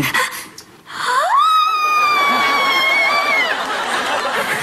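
A young woman shrieks with excitement.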